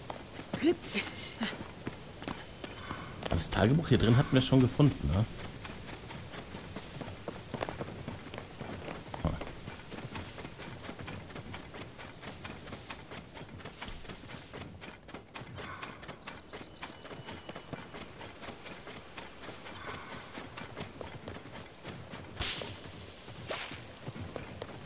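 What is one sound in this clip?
Footsteps run quickly over grass and stone.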